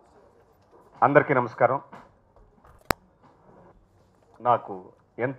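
A middle-aged man speaks calmly into a microphone, heard through a loudspeaker.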